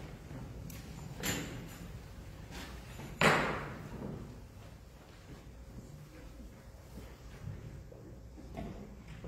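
Footsteps shuffle across the floor in a large echoing hall.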